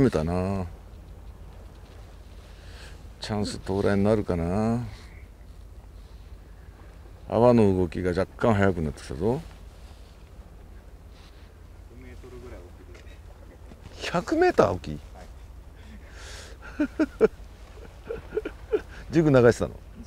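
A man talks in short bursts, close by.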